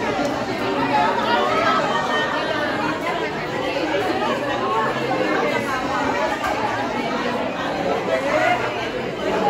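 A young woman talks and laughs cheerfully close by.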